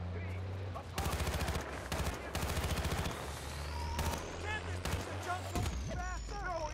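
Rapid rifle gunfire cracks out in bursts.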